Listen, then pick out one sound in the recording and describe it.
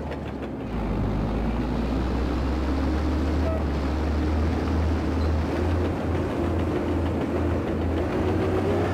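A bulldozer's diesel engine rumbles steadily.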